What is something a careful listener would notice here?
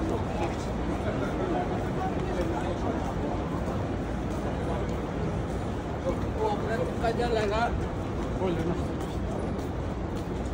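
Footsteps shuffle on stone paving.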